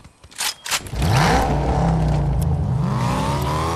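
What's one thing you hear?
A muscle car engine starts and revs up.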